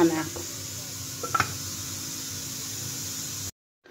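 A metal lid clanks onto a pot.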